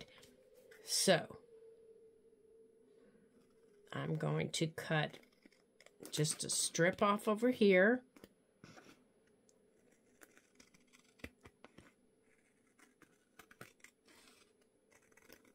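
Scissors snip through paper.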